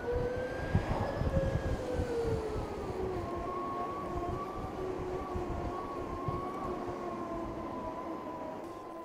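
An electric motorcycle motor whines steadily.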